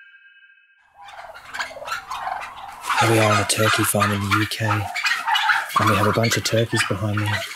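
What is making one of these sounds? Many turkeys gobble and chatter loudly close by.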